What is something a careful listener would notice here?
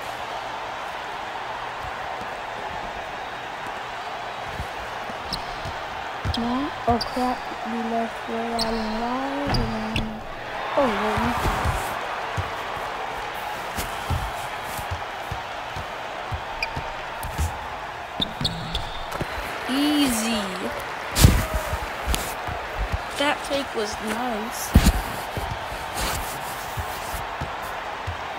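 Basketball shoes squeak on a hardwood court.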